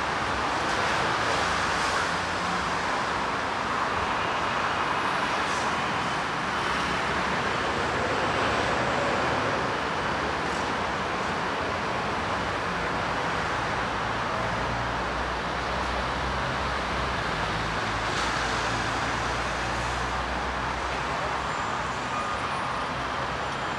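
City traffic hums steadily nearby, outdoors.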